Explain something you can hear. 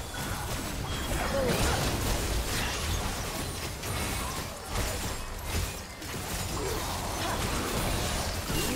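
Game impacts thud and clash repeatedly.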